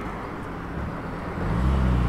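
A car approaches with a rising engine rumble.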